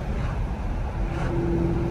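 An oncoming car swishes past.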